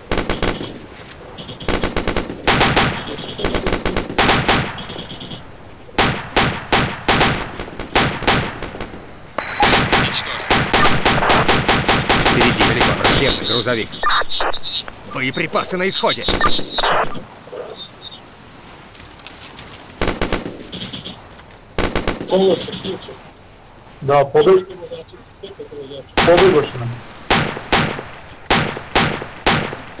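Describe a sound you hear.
Gunshots crack in rapid bursts outdoors.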